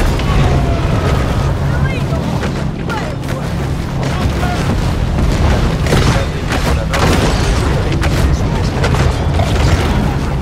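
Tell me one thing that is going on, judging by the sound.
Waves splash and churn.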